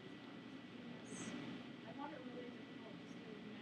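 A young woman speaks softly and calmly close to a microphone.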